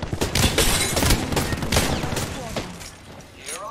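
A gun fires rapid shots up close.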